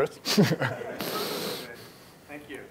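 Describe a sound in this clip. An audience laughs briefly.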